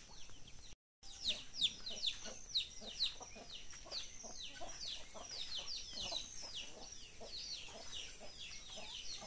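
Chickens chirp and cluck nearby.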